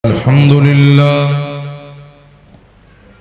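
A man chants in a long, melodious voice through a microphone.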